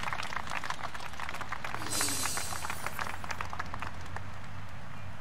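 A rock band plays with electric guitars and drums, then stops.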